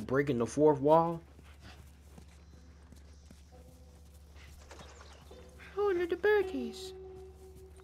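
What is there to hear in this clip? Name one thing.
Footsteps crunch softly through grass and weeds.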